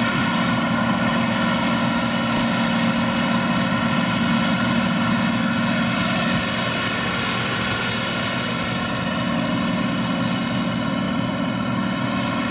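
A combine harvester's engine roars steadily close by.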